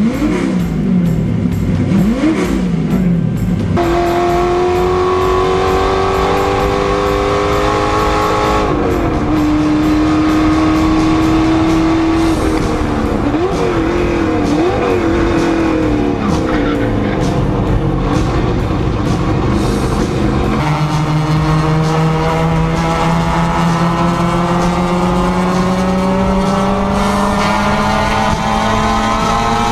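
A race car engine roars loudly inside the cabin, revving up and down through gear changes.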